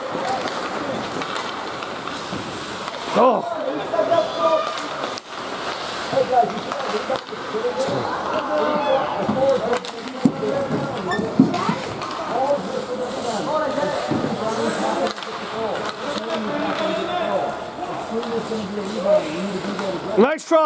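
Spectators nearby talk and call out in a large echoing hall.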